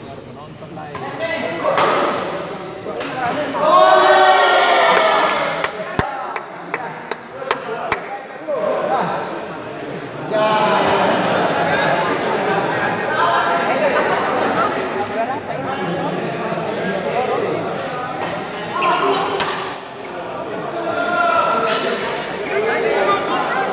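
Men talk and call out loudly nearby in a large echoing hall.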